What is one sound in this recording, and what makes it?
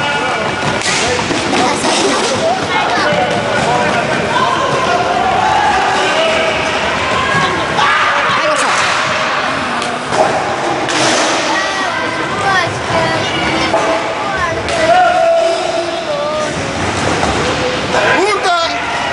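Roller skate wheels roll and scrape on a hard floor in a large echoing hall.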